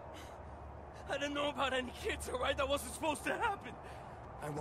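A young man speaks shakily and pleads, close by.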